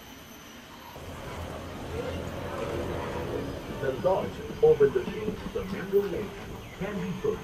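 A tram rumbles along a path.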